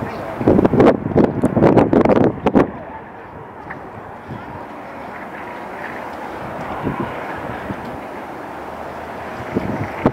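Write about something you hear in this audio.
Traffic hums steadily at a distance as vehicles cross a raised roadway.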